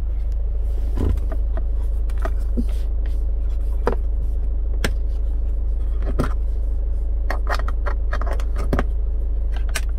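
Plastic caps on car power sockets click as a gloved hand works them.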